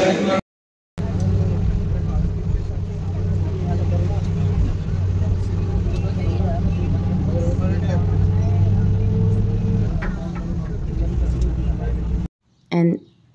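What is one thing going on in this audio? A bus engine hums steadily while the bus drives along.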